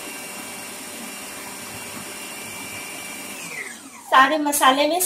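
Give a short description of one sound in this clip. A food processor motor whirs steadily, then slows and winds down.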